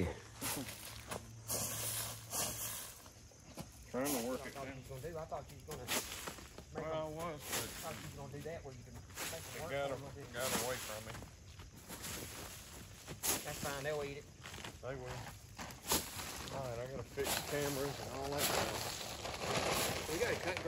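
Dry corn rattles as it is scattered onto leaves.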